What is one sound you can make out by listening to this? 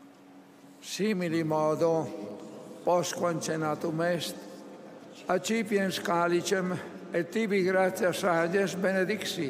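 An elderly man chants into a microphone, echoing over a large open space.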